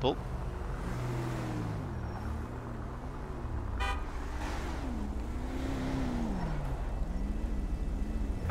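A car engine hums and revs as it drives along a road.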